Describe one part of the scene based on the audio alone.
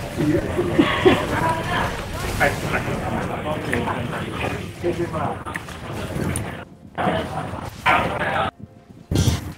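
Magic spells and weapon hits clash in a video game battle.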